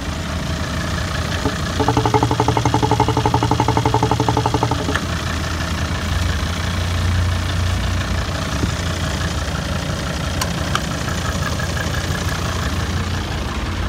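A car engine idles with a steady low rumble close by.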